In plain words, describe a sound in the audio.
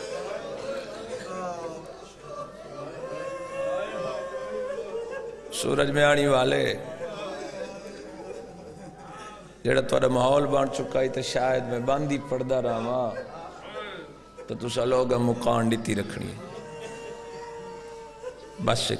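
A man speaks passionately into a microphone, his voice rising in loud bursts through a loudspeaker.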